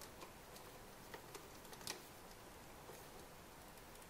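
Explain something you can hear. A screwdriver turns a screw with faint scraping.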